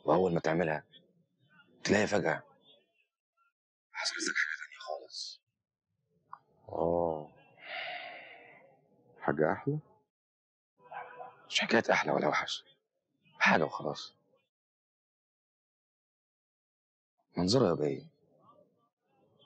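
A young man speaks calmly and close by.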